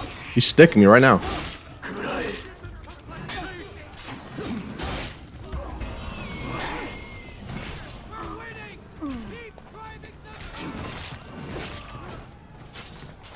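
A young man talks with animation into a headset microphone, close by.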